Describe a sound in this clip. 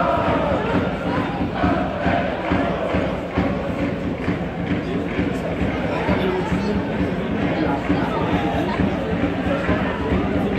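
A stadium crowd chants and sings loudly nearby.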